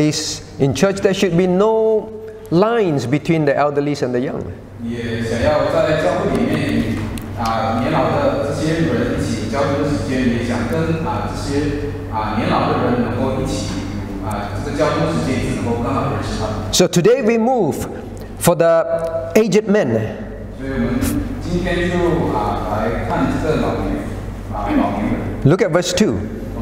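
A middle-aged man speaks steadily into a microphone.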